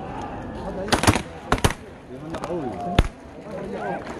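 Confetti cannons pop loudly.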